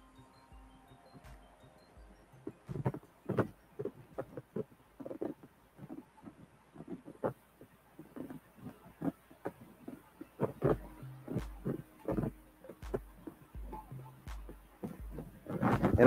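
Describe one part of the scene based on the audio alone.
Paper rustles and crinkles against a hard surface.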